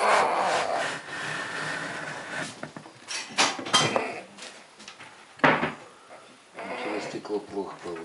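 A plastic lid slides and clicks as a hand opens it.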